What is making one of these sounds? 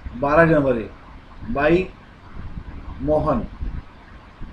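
A young man speaks calmly and slowly into a close microphone.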